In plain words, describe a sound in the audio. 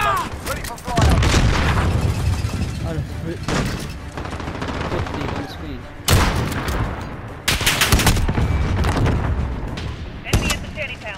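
Loud rifle shots boom and echo.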